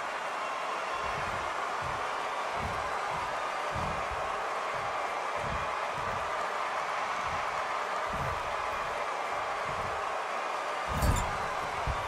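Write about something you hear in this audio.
Bodies thud heavily against a wrestling ring.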